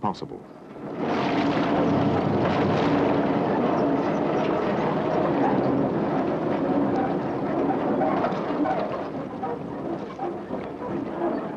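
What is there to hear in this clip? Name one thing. A heavy truck engine labours and roars steadily.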